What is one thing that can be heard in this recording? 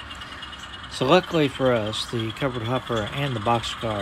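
A toy train engine blasts its horn loudly.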